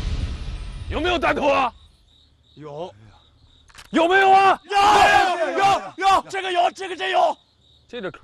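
Young men shout in alarm.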